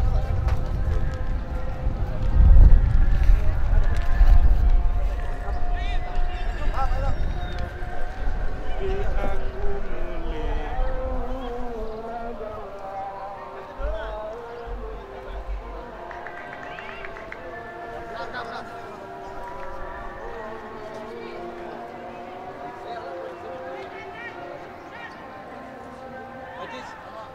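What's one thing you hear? Young men shout to one another across an open field outdoors.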